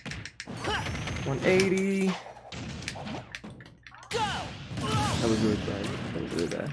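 Punches and blasts crack and whoosh in a fighting game.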